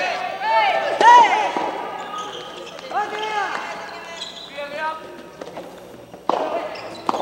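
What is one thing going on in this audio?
A racket strikes a ball with sharp pops.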